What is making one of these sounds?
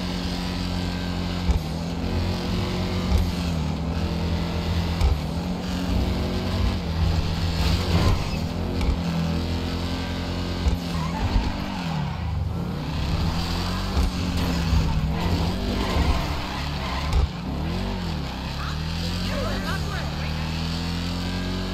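A car engine roars and revs up and down as it speeds along.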